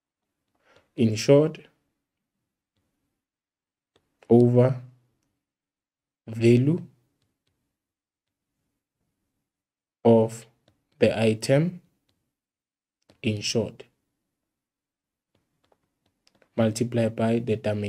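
A young man speaks calmly through a microphone, in short phrases with pauses.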